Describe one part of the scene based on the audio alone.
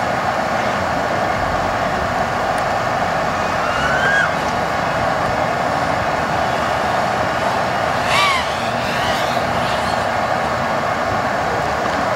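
A small racing drone's motors buzz loudly, with the pitch rising and falling sharply as the drone speeds up and turns.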